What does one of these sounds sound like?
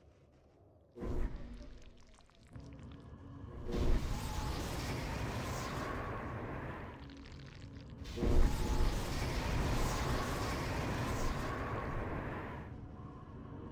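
A trail of fire roars and crackles in bursts.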